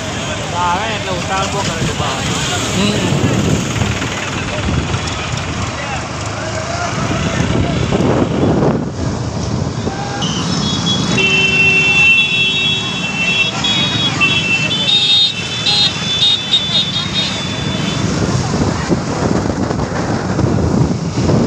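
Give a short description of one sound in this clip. A crowd of men and women chatters and shouts outdoors.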